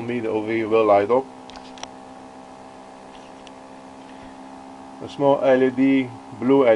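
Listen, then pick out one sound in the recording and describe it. An electric device hums steadily.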